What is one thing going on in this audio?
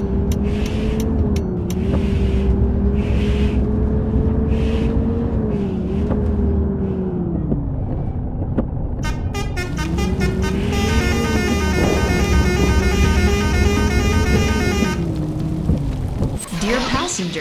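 A bus engine hums steadily, its pitch dipping and rising as the bus slows and speeds up.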